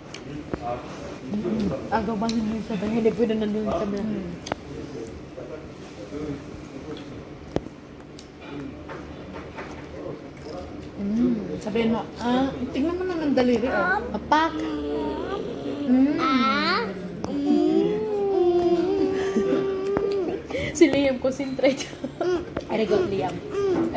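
Young children talk and chatter excitedly close by.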